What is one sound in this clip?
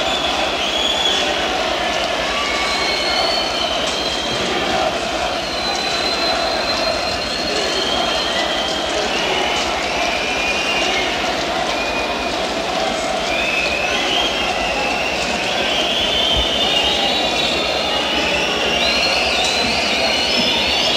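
A rock band plays loudly live, with drums and electric guitar.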